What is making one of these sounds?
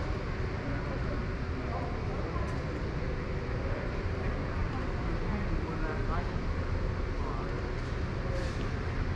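Distant visitors murmur indistinctly in a large echoing hall.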